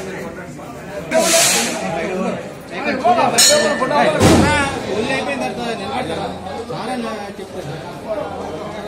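Several men talk over each other nearby.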